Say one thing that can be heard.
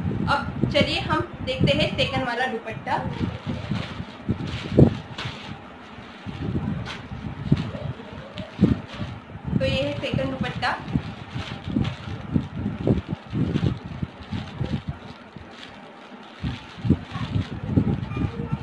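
A young woman talks to the listener close to a microphone.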